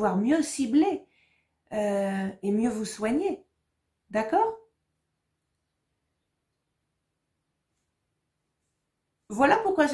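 A woman speaks calmly and clearly into a close microphone, with pauses.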